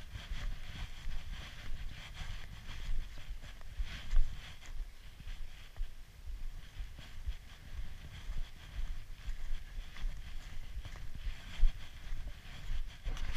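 Footsteps crunch steadily on packed snow.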